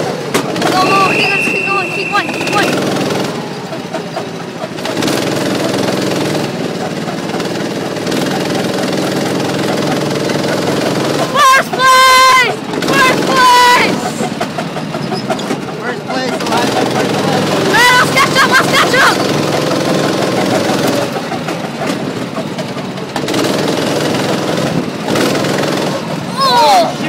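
A go-kart engine hums steadily close by.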